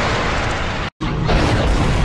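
A rocket thruster hisses.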